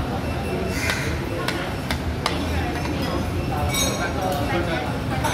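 A busy crowd murmurs in a large echoing hall.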